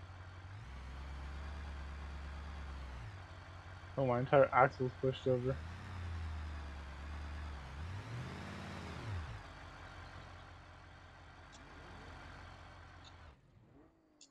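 A truck engine revs and rumbles as it crawls over rocks.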